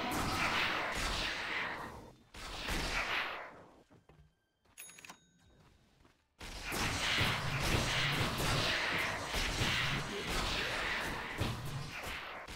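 Magical blasts whoosh and crackle in a fast fight.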